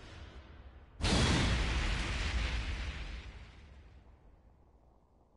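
A loud whooshing blast bursts out and slowly fades.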